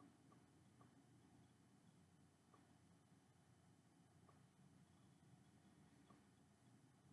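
A game console menu gives a soft short blip with each move.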